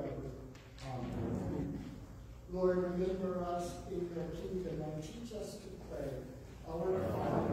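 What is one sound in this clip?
A man speaks slowly through a loudspeaker in an echoing hall.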